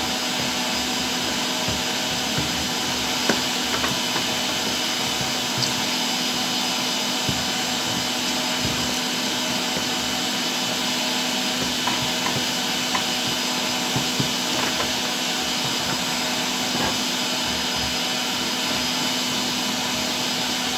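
A spatula scrapes and taps against a foil tray.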